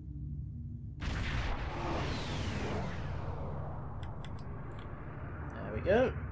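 A spaceship engine rises into a loud whoosh and slowly fades.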